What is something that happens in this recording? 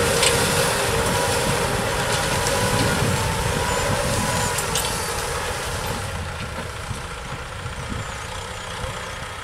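A diesel tractor engine chugs under load.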